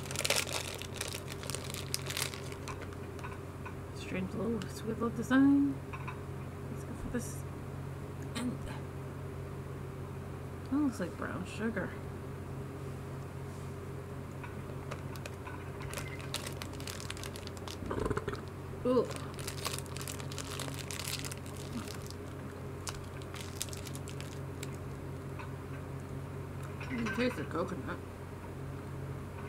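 A plastic wrapper crinkles as it is unwrapped.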